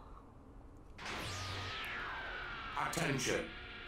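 A spaceship hatch whirs open with a rising mechanical hiss.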